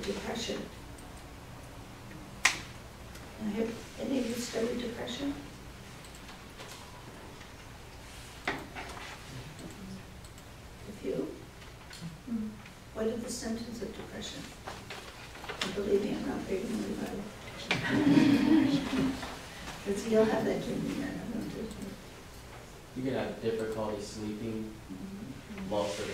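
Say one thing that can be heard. An elderly woman talks calmly and close by, pausing now and then.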